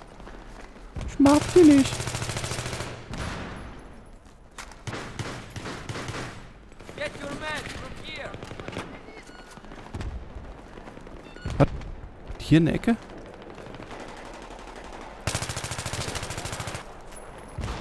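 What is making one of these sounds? A rifle fires rapid bursts of shots nearby.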